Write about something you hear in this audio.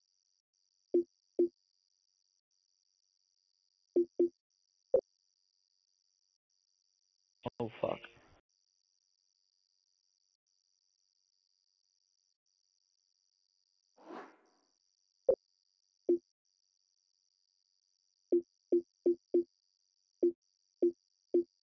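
Short, soft menu clicks tick now and then, sometimes in quick runs.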